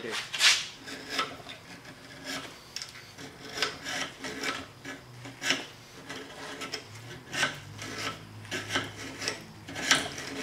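Metal clinks and scrapes as a piece is worked in a vise.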